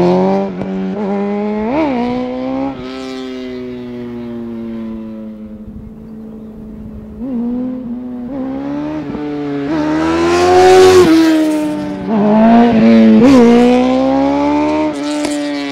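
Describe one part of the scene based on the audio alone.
A motorcycle engine revs and drones along a road, rising and falling in pitch.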